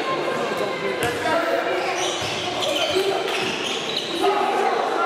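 A handball bounces on a hard indoor court in an echoing hall.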